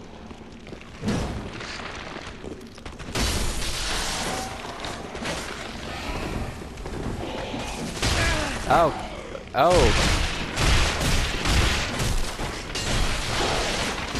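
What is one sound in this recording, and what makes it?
Blades clash and strike in a fierce fight.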